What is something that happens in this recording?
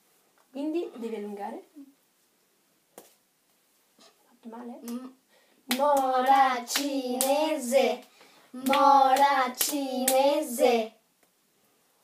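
A young boy and a young girl sing a clapping rhyme together, close by.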